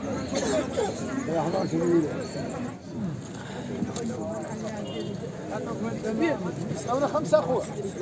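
Several men talk over one another close by, outdoors.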